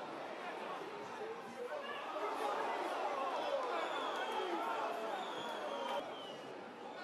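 Men shout on an outdoor pitch.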